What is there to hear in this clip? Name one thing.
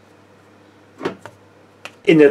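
A lump of dough thumps down onto a wooden board.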